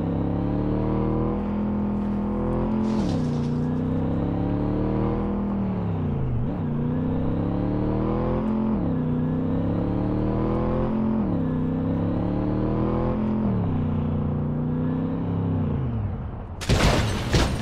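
A car engine revs up and drops repeatedly as gears shift.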